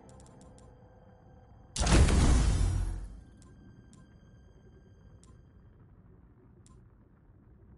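Short, soft menu clicks tick now and then.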